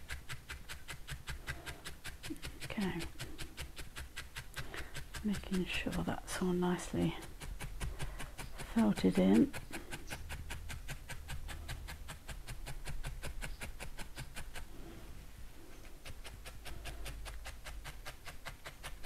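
A felting needle stabs rapidly and steadily into wool with soft clicks.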